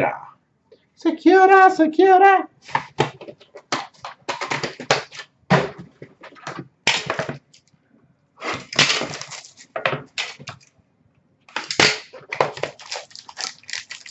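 Cardboard boxes are handled with tapping and scraping, close by.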